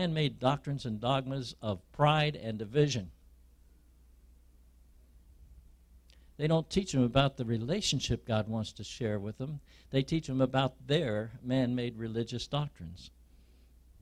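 A man preaches over a microphone in a large room, speaking with pauses.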